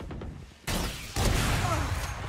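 A rifle fires a single loud, booming shot.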